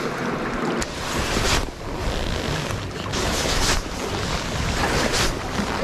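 Waves lap gently against rocks.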